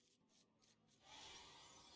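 A sparkling magical shimmer rises.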